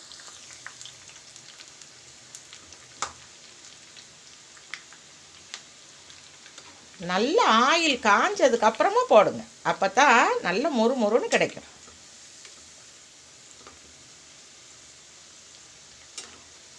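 A metal ladle clinks against a pan.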